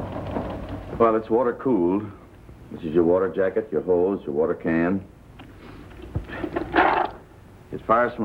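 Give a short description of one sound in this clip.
A middle-aged man explains calmly, close by.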